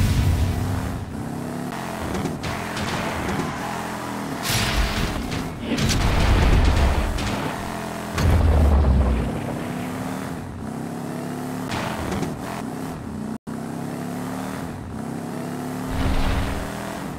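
A video game race car engine drones and whines.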